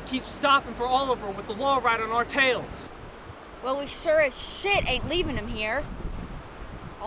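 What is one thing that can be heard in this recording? A young woman speaks tensely up close.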